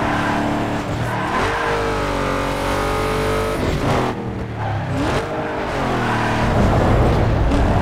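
Tyres screech as a car slides through a corner.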